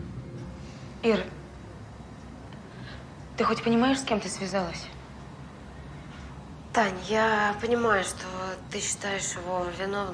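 A young woman speaks nearby with a tense, raised voice.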